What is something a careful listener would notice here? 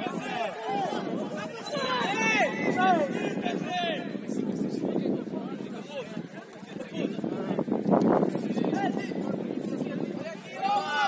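Several women chat close by, with animation.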